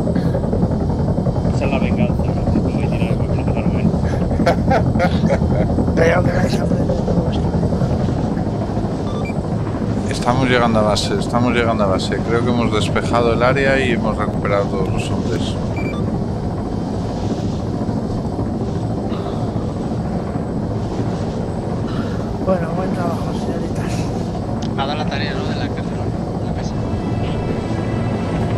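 A helicopter's rotor and engine drone loudly and steadily.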